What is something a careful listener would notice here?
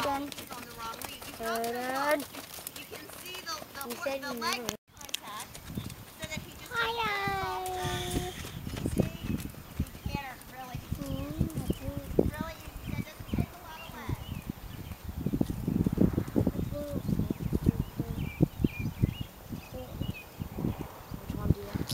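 A horse's hooves thud on soft ground at a trot.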